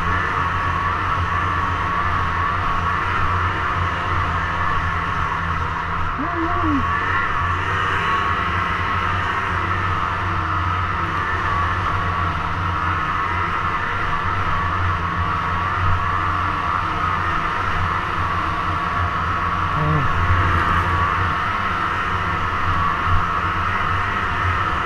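Snow hisses under a snowmobile's track and skis.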